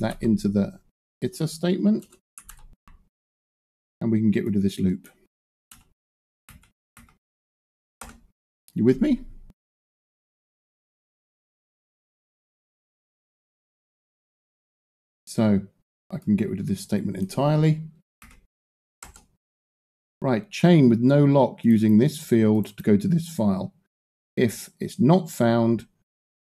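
A middle-aged man talks calmly into a close microphone, with pauses.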